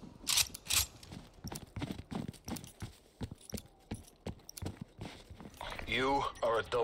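Footsteps crunch steadily on snow.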